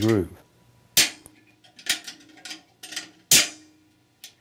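Metal clutch parts click against a transmission case.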